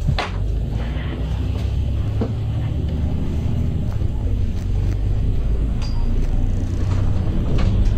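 A vehicle rumbles low and steady as it drives along a street.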